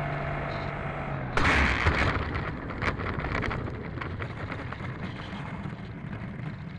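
A model plane's propeller whirs and slows down.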